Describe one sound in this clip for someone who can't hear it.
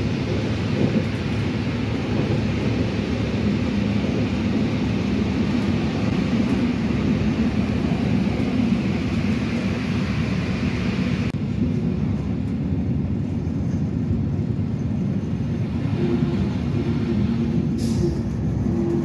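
A train rumbles and rattles steadily along the tracks, heard from inside a carriage.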